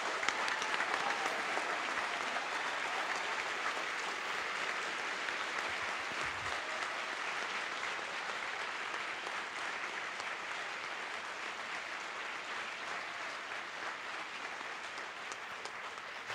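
A large audience claps and cheers in a hall, slowly fading.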